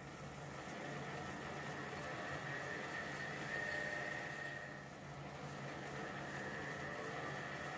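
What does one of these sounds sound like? Abrasive cloth rubs against a spinning metal shaft with a soft hiss.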